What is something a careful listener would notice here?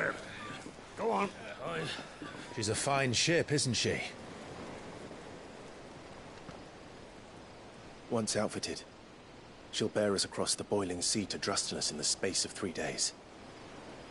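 A man speaks calmly and warmly.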